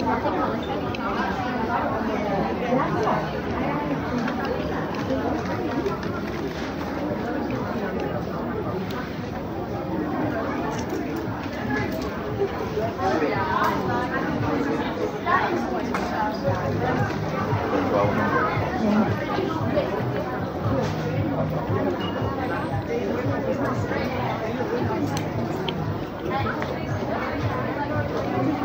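Shoppers chatter and murmur in a large, busy indoor space.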